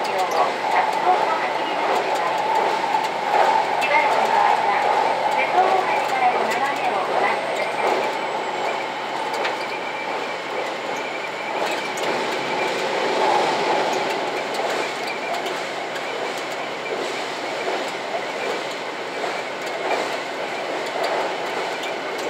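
A diesel express train rumbles along the track across a steel bridge, heard from inside the cab.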